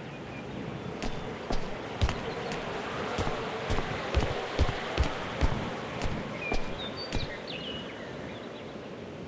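Footsteps thud on a wooden floor.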